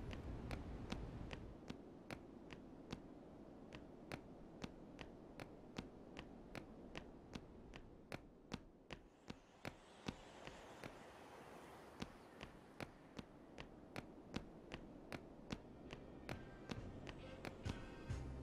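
Footsteps tap quickly and steadily on stone pavement.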